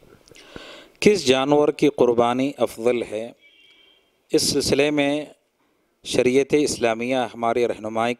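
A man speaks calmly and steadily into a microphone.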